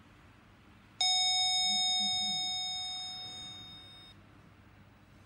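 An elevator chime rings once and slowly fades.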